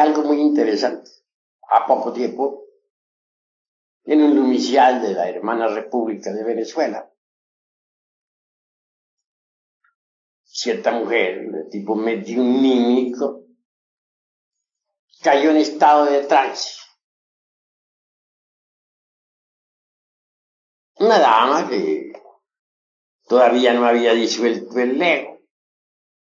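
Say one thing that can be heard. A man speaks calmly and clearly in short phrases with long pauses, close to a microphone.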